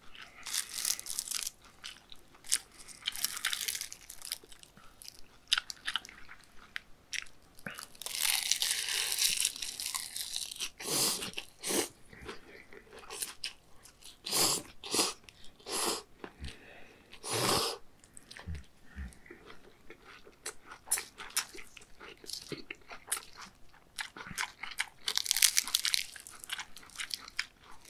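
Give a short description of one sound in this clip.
A man chews food wetly, close up.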